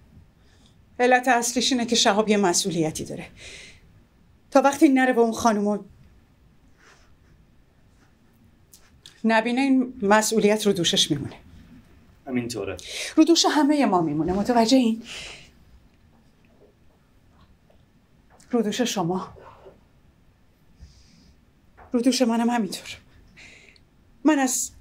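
A middle-aged woman speaks calmly and clearly into a microphone.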